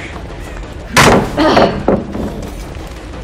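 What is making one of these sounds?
A heavy blade swings through the air and strikes with a loud hit.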